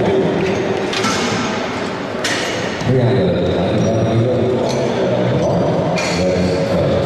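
Metal weight plates clank as they are loaded onto a barbell.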